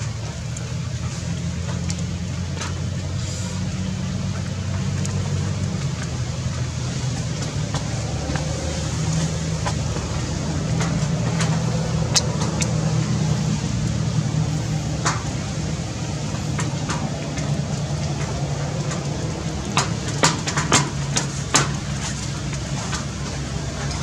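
Monkeys scratch and rustle against branches close by.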